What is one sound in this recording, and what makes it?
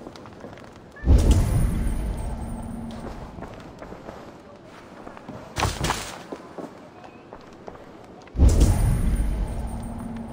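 A deep magical whoosh swells and slowly fades.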